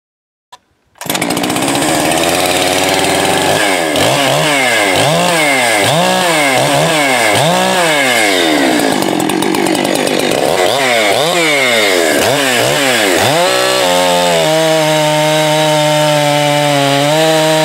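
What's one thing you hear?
A second chainsaw runs steadily as it cuts into a log.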